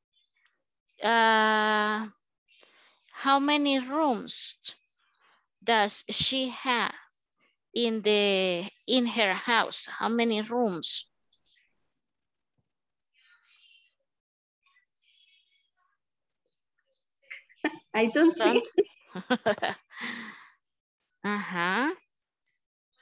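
A young woman reads aloud slowly, heard through an online call.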